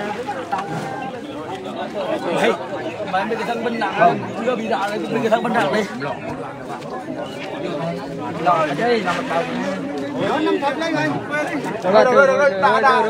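A crowd of men and women talk over one another close by, outdoors.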